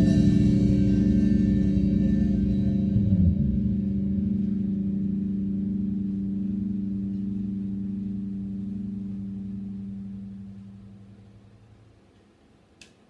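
An electric guitar chord rings out loudly and slowly fades away.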